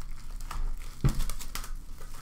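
A cardboard box thumps down on a hard surface.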